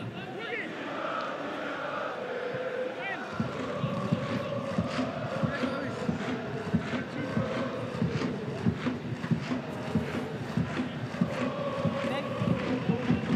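A large stadium crowd chants and sings steadily.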